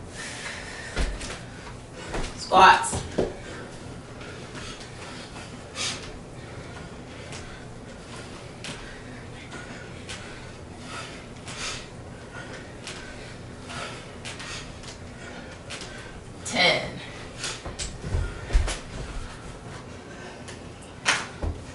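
Bodies and feet thud softly on a wooden floor.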